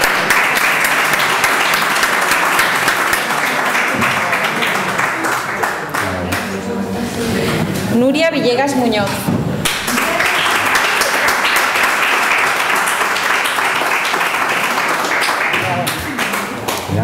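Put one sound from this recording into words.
An audience applauds in a hall.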